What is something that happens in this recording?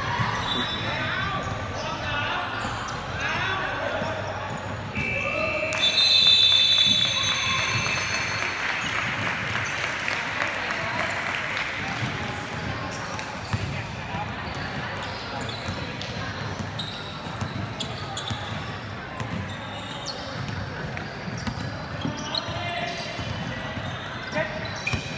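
Young people shout and call out in a large echoing hall.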